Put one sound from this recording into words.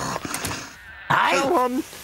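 An elderly woman speaks crossly.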